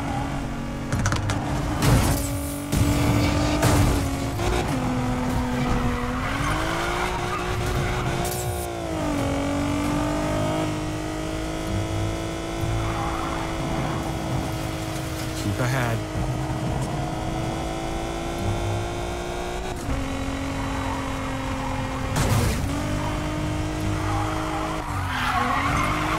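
A car engine roars at high revs, rising and falling as gears shift.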